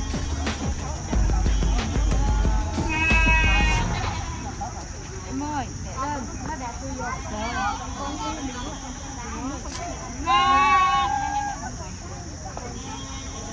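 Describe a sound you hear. Young women chatter and laugh nearby.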